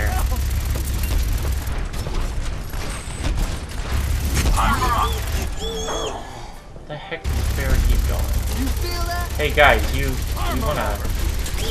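A heavy gun fires rapid, booming bursts.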